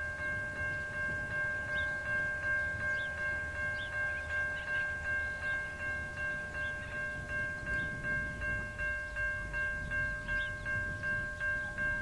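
A level crossing bell rings rapidly and steadily.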